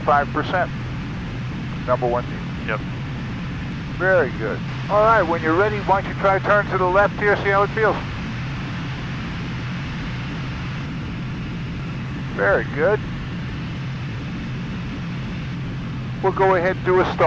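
A young man speaks calmly through a headset microphone.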